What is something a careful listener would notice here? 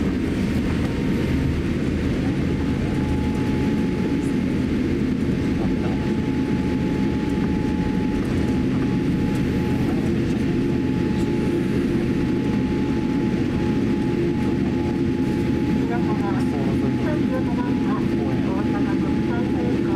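Airliner wheels rumble over the runway.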